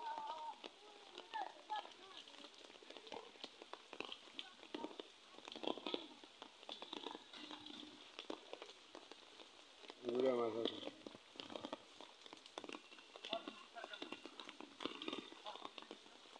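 Water splashes as fish thrash in a shallow pond.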